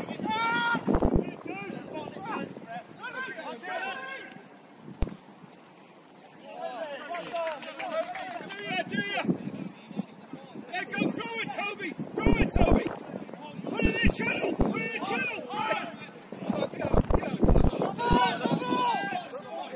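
Football players, young men, shout to each other across an open pitch outdoors.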